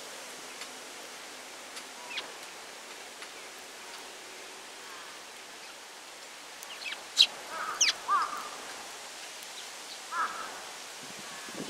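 A small bird pecks at seeds with light taps.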